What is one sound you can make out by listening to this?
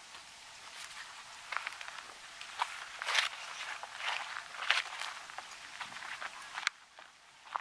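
Birds chirp and twitter.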